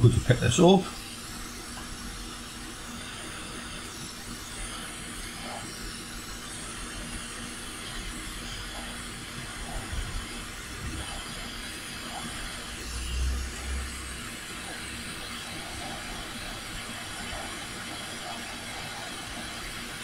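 A plastic tool is handled, with faint soft bumps and rubbing.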